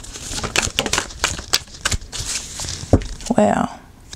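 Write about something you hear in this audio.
A card is laid down softly on a table.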